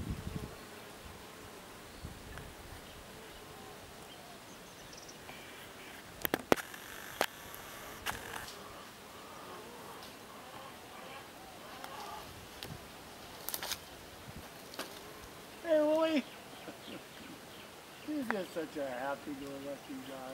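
Bees buzz softly around a hive entrance.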